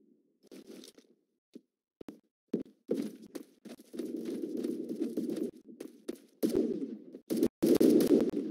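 Footsteps thud quickly across a hard floor.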